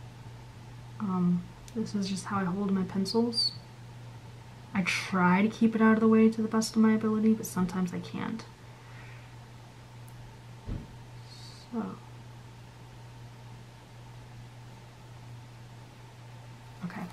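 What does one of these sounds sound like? A felt-tip marker rubs softly on paper.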